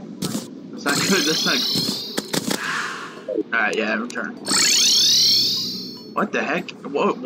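Shimmering magical chimes sweep up and down.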